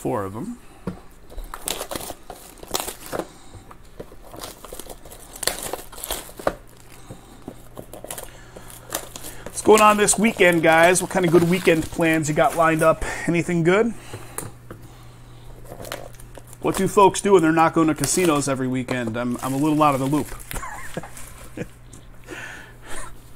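Cardboard boxes slide and knock together as they are handled.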